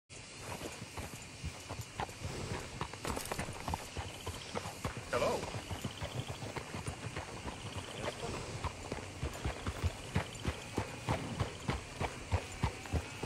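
A horse's hooves clop steadily on a dirt road.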